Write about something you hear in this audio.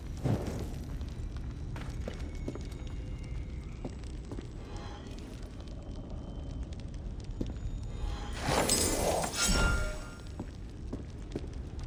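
A torch flame crackles.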